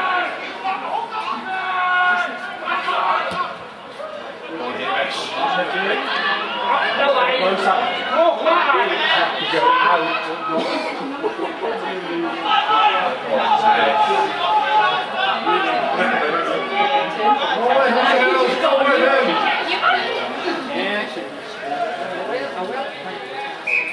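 Young women shout and call out to each other outdoors.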